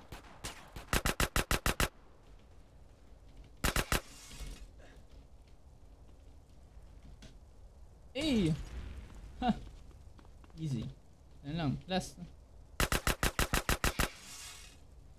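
A pistol fires in rapid bursts of shots.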